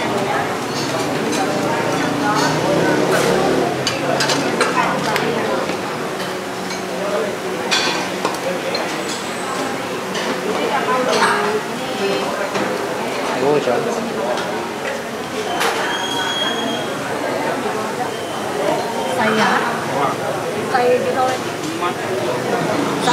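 Metal utensils clink against bowls and pots.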